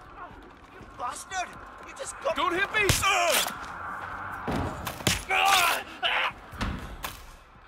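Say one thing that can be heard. A young man shouts in alarm.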